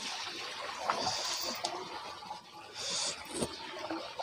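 Fish splash about in a shallow tub of water.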